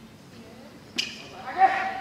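A volleyball is struck with a smack.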